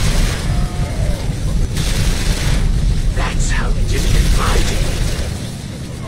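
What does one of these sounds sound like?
Weapons fire and blasts go off in a battle.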